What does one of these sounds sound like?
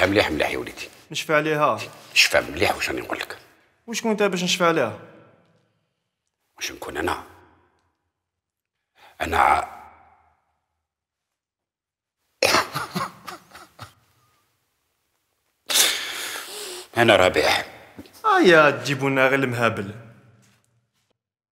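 An elderly man speaks in a pleading, strained voice.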